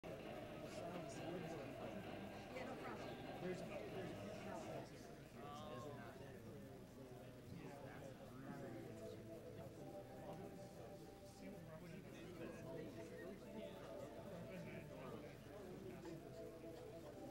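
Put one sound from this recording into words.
Young men talk with animation close to a microphone.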